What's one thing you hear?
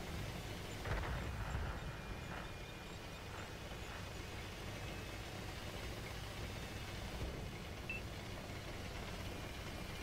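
Tank tracks clatter over rough ground.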